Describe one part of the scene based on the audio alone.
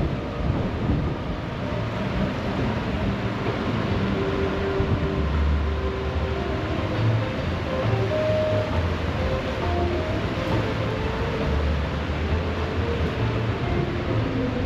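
A fast river rushes and churns steadily close by.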